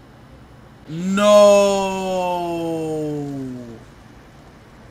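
A young man exclaims in surprise close by.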